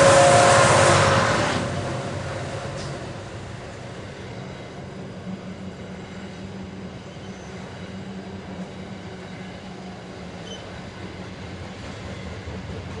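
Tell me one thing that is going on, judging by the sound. A long freight train rumbles steadily along the tracks outdoors.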